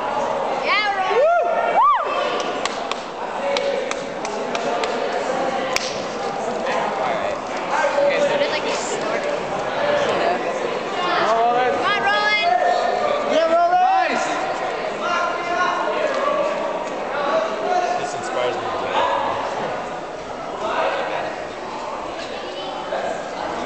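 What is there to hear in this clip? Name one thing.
Young men and women chatter and shout excitedly nearby.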